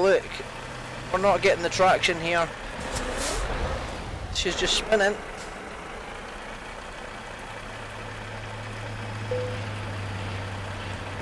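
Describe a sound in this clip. A heavy truck engine hums steadily.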